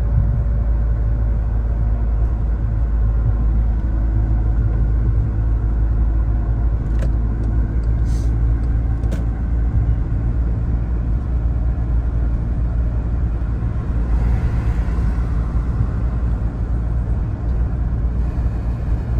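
A car engine hums steadily from inside the car.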